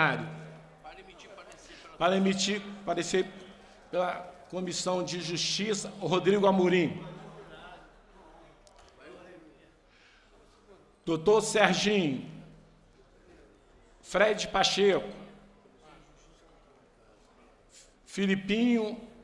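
An elderly man reads out calmly into a microphone, in bursts with pauses.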